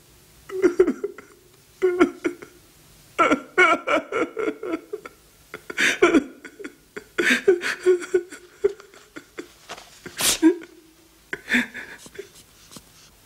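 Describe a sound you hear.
A middle-aged man speaks close by in a giggling, pleading tone.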